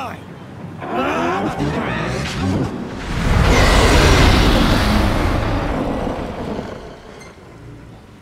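A huge wave of water roars and crashes loudly.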